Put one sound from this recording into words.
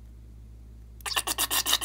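Liquid trickles out of a balloon into a glass bowl.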